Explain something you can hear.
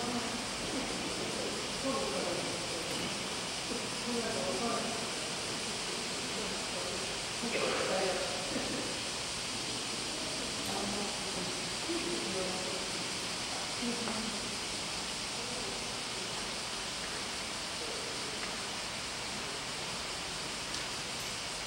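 A man speaks calmly through loudspeakers, echoing in a large hall.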